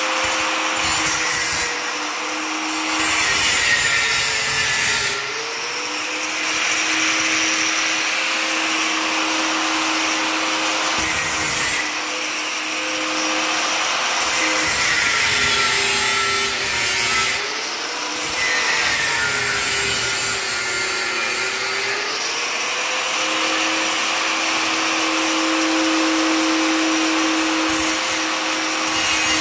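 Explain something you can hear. An angle grinder motor whines loudly and steadily.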